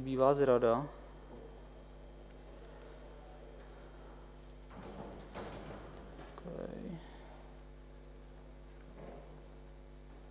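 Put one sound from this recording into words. A man speaks into a microphone in an echoing hall, in short bursts with pauses.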